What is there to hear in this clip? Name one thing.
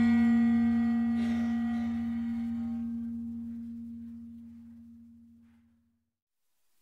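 Gongs and metal chimes of a percussion ensemble ring out and slowly die away in a large hall.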